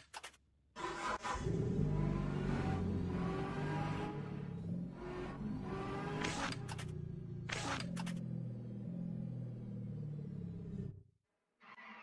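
A car engine roars and revs as a game car speeds along.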